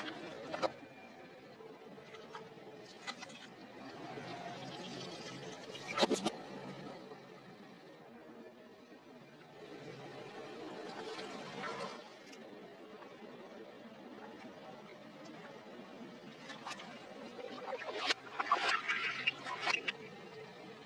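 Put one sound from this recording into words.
A car tyre crushes objects with sharp pops and cracks.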